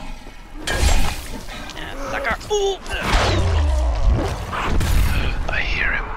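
Heavy blows thud wetly into flesh.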